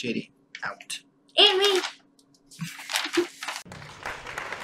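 A young boy speaks and laughs close to the microphone.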